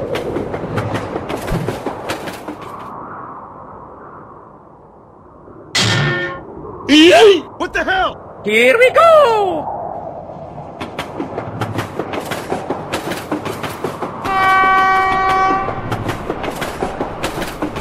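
A train's wheels clack rhythmically over rail joints.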